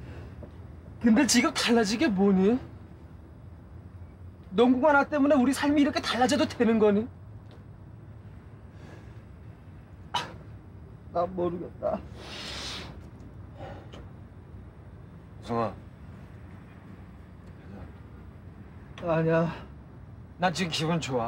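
A young man speaks quietly and earnestly, close by.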